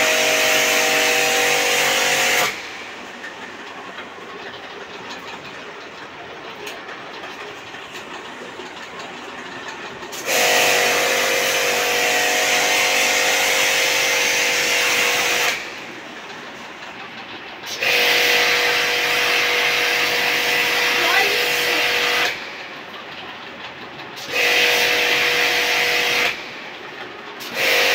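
A pressure washer pump whirs loudly in bursts, stopping and starting again.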